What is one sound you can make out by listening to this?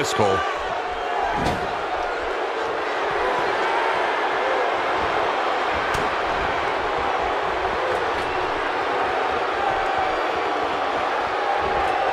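A large crowd cheers and roars steadily in a big arena.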